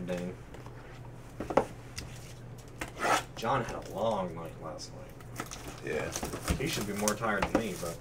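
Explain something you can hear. A foil card pack crinkles as hands tear it open.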